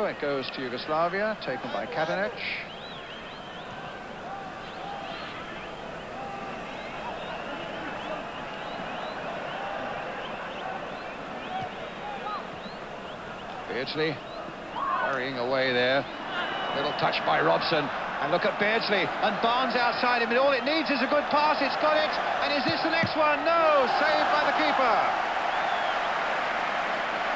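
A stadium crowd murmurs and roars in the distance.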